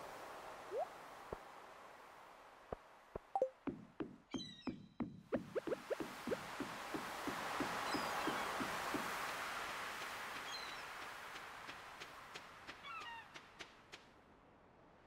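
Waves wash softly against a shore.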